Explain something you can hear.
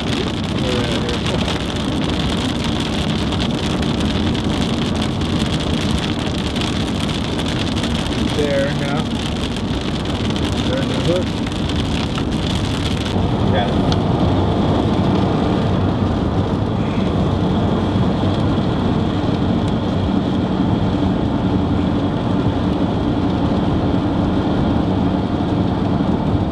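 A car engine hums steadily inside a moving vehicle.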